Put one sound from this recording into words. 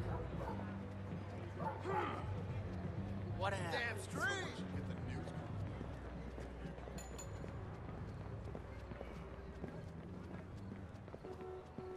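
Footsteps run quickly across pavement.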